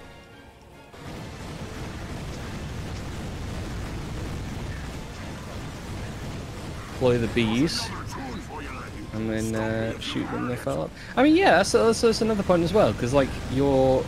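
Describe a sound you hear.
Energy weapons fire and explosions boom in rapid bursts.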